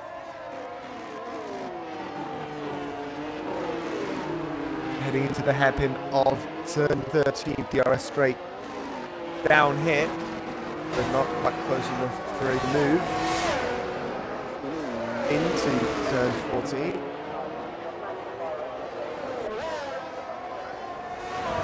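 Racing car engines whine at high revs, rising and falling as the cars shift gears.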